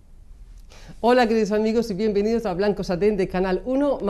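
A young woman speaks clearly and calmly close to a microphone.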